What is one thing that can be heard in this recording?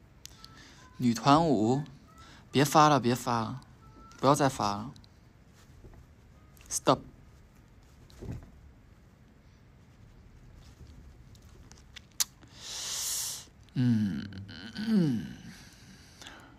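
A young man speaks softly and close, in short bursts, with pauses between.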